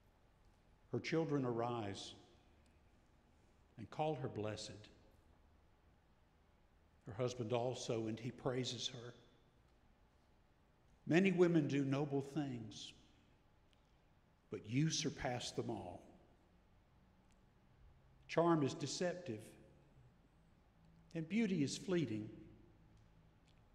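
An elderly man speaks slowly and calmly into a microphone in a large echoing hall, with long pauses between phrases.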